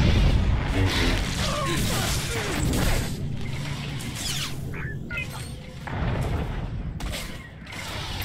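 A lightsaber hums and swooshes as it swings.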